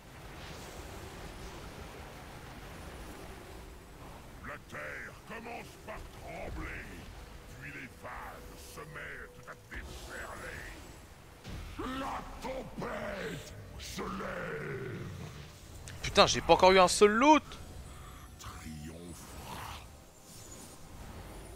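Magic spells crackle and boom.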